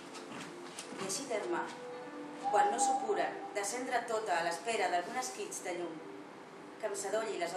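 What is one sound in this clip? A woman reads aloud into a microphone in a large echoing hall.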